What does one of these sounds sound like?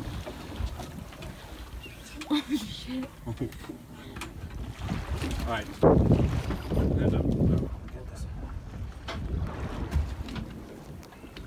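A shark thrashes and thumps against a boat's deck.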